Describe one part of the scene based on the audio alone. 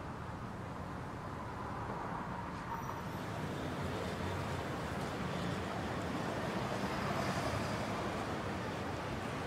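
City traffic hums and rumbles steadily.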